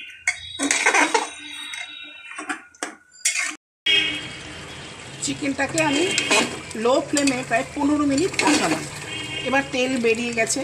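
A metal spoon scrapes and clanks against the side of a metal pot.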